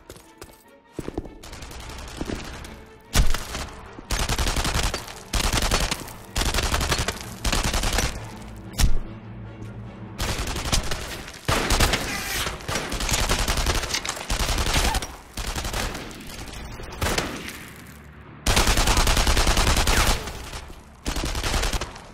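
Automatic gunfire rattles in short, loud bursts.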